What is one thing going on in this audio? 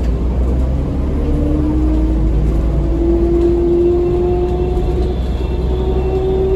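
A bus motor whines, slowly rising in pitch as it speeds up.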